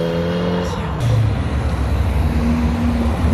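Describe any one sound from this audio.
A small car engine rumbles close by as the car drives slowly past.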